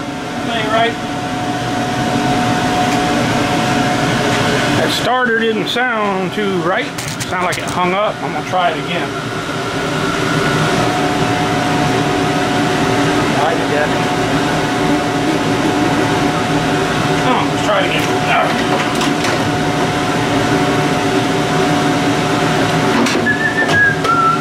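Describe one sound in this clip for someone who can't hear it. An outboard motor idles steadily close by.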